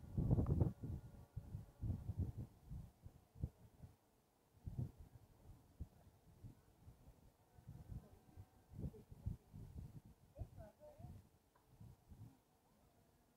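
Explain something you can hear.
Wind buffets a microphone in gusts.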